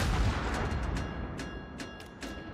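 Ship guns boom and rumble in the distance.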